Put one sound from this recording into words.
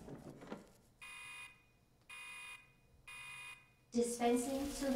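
A machine beeps in short, repeated pulses.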